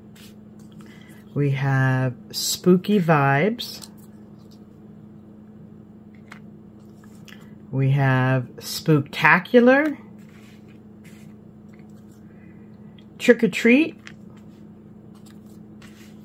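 Thin paper cutouts rustle softly as they are handled and set down.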